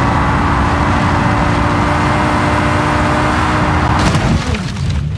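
A car engine roars steadily at high speed.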